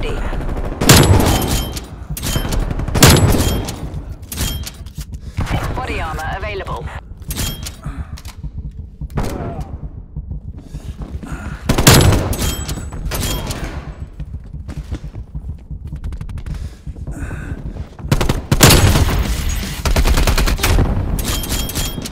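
Gunshots fire in loud, sharp bursts.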